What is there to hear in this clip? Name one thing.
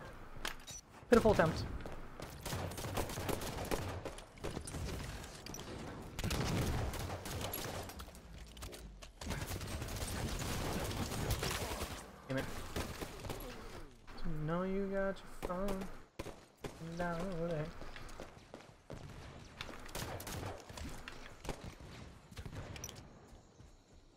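Rapid gunfire and blasts crackle from a video game.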